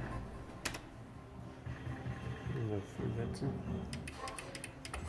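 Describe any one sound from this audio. A slot machine plays a bright electronic tune.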